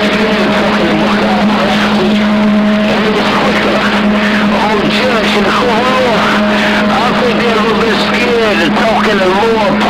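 A shortwave radio hisses and crackles with static.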